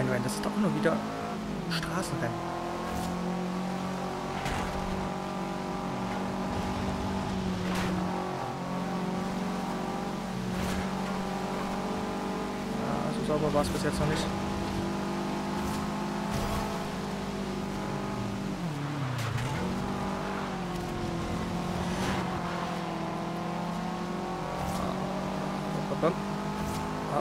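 A racing car engine roars steadily at high revs, with its pitch shifting between gear changes.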